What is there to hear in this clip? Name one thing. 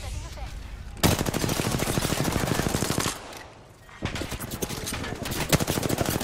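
Rapid gunfire rattles loudly in bursts.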